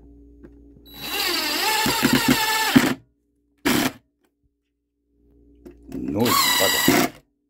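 A cordless screwdriver whirs in short bursts, driving screws.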